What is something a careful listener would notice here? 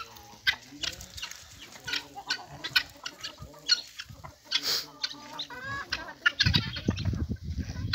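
Chickens cluck and squawk nearby outdoors.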